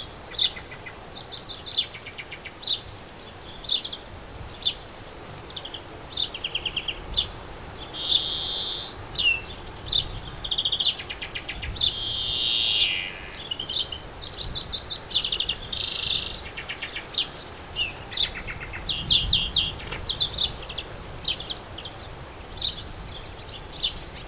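A magpie chatters and calls in quick bursts nearby.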